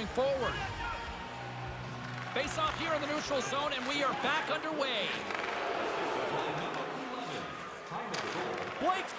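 Ice skates scrape and glide across the ice.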